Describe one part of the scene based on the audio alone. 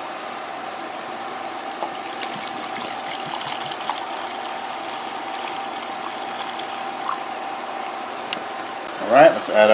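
Water pours from a bottle into a jug.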